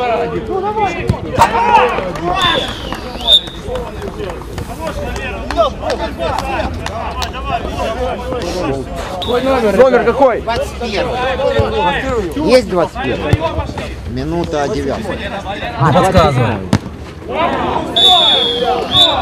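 Several men shout and call out outdoors on an open pitch.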